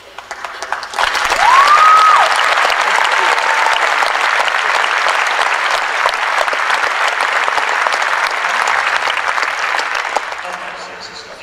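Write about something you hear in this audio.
A large crowd applauds and cheers loudly, then fades.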